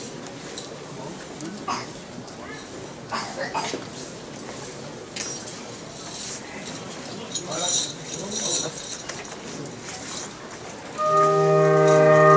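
Footsteps shuffle on a paved street.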